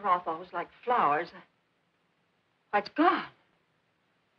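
A woman speaks urgently nearby.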